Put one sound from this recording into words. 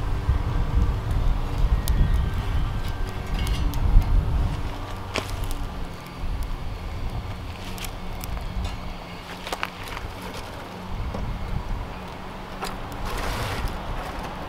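Dry twigs click and rattle as they are handled.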